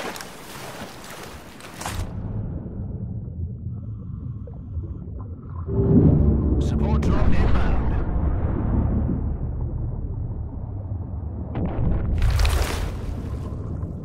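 Water splashes loudly.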